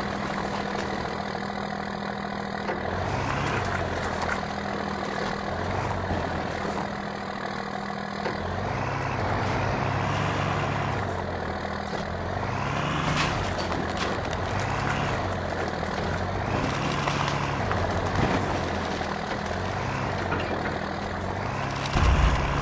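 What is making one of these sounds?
An off-road buggy engine revs up and down repeatedly.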